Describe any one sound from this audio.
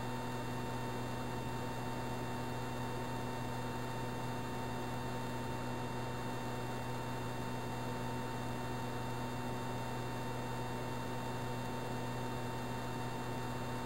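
A video game jet engine drones steadily with a buzzing electronic hum.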